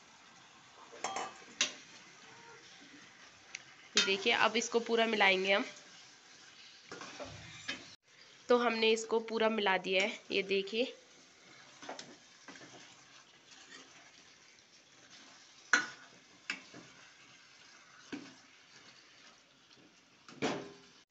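A metal spoon scrapes and knocks against a pan.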